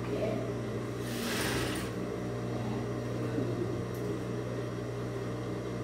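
A sewing machine motor hums and whirs steadily.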